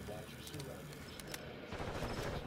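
A rifle is handled and reloaded with sharp metallic clicks.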